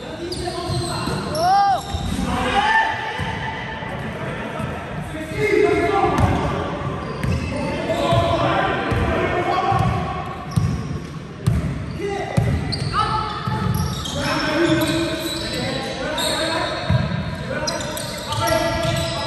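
A basketball bounces with echoing thuds on a hard floor in a large hall.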